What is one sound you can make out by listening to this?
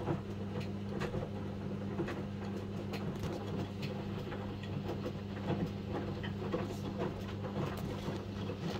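Wet laundry tumbles and sloshes in water inside a washing machine drum.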